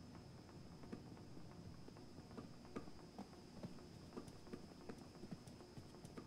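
Footsteps tread quickly and evenly on a hard floor.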